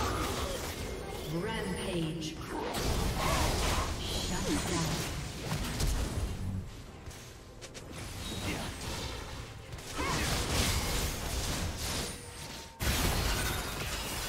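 Magic blasts, whooshes and hits clash in a hectic video game battle.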